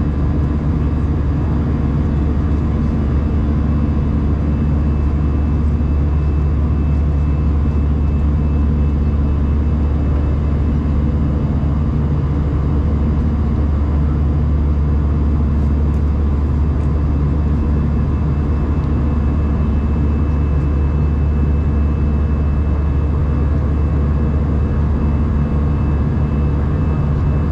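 Jet engines roar with a steady, deep drone inside an airliner cabin.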